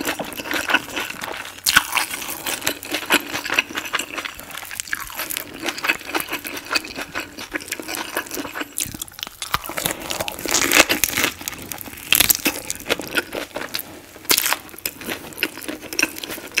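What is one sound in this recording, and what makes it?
A rice paper roll crinkles and squishes between fingers.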